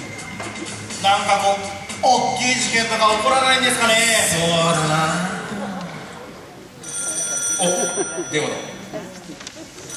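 A man speaks loudly and with animation through a microphone.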